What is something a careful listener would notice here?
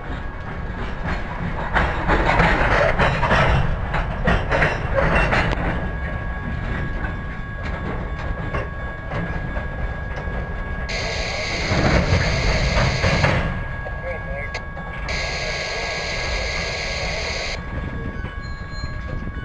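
Steel wheels clank and squeal on the rails.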